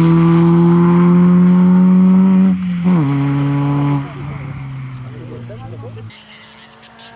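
A rally car engine revs loudly and shifts gears as the car drives away.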